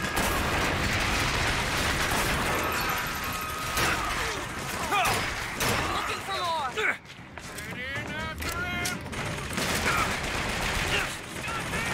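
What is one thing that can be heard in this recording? A rifle fires in bursts of gunshots.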